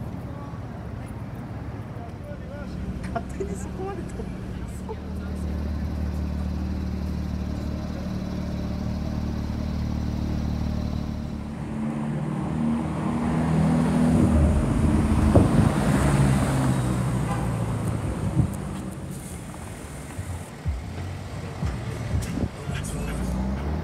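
City traffic hums in the background.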